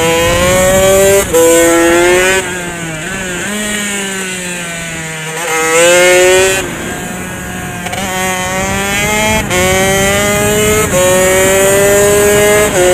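A motorcycle engine revs loudly close by, rising and dropping in pitch as it shifts gears.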